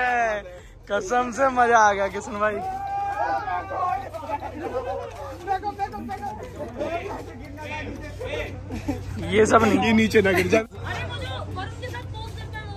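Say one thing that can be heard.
Several young men laugh and chatter nearby.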